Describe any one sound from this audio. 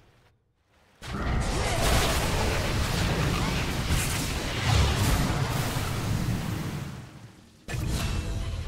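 Magic spells crackle and blast during a fight.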